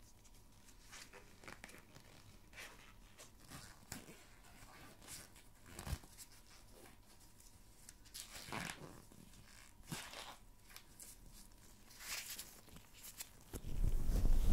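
Rubber gloves squeak and rustle close to a microphone.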